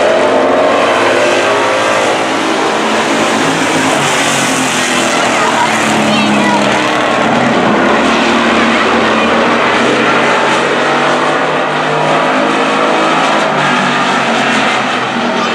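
Race car engines roar loudly around a track.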